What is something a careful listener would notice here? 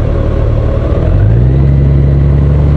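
The pitch of a touring motorcycle engine rises as the bike speeds up.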